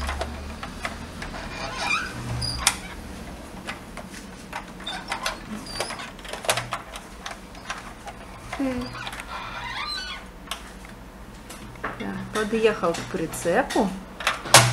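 Plastic toys click and clatter on a wooden table.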